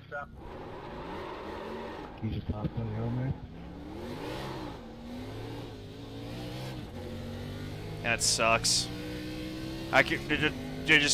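A racing car engine drones and shifts in pitch.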